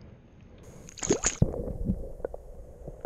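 Water splashes loudly close by.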